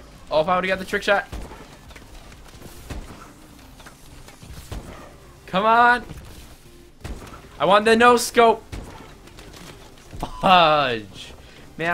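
A young man talks with animation, close to a microphone, in short bursts.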